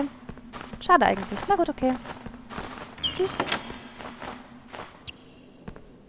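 Quick footsteps run across a wooden floor.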